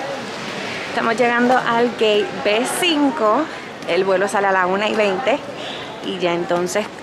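A young woman speaks calmly close to a microphone.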